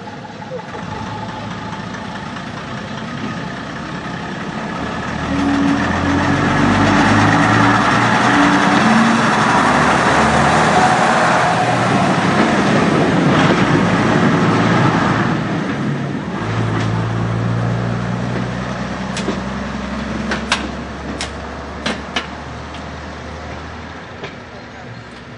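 A diesel railcar engine rumbles, grows loud as it passes close by, then fades into the distance.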